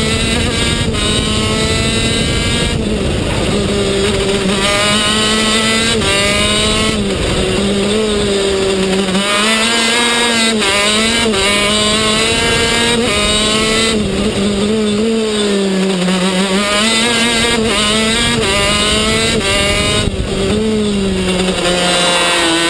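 A kart engine screams loudly close by, its pitch rising and falling as it speeds up and slows for corners.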